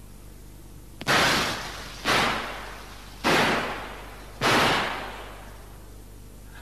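A pistol fires four loud shots that echo and fade.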